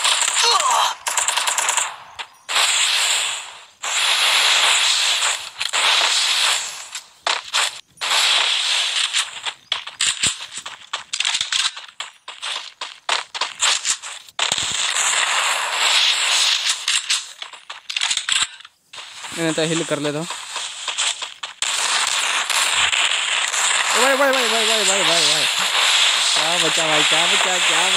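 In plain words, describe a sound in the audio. Ice walls burst up with a crackling whoosh.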